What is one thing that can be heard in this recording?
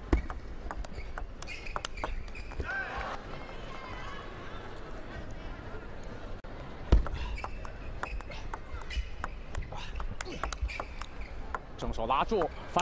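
A ball clicks back and forth on paddles and a table in quick bursts.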